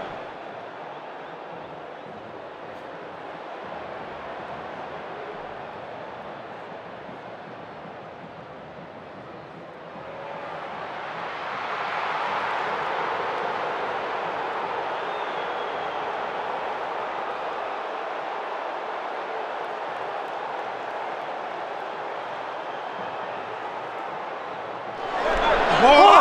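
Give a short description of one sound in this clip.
A large stadium crowd roars steadily and swells loudly after a goal.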